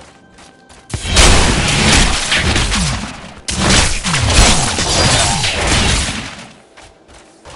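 Weapons clash loudly in a fight.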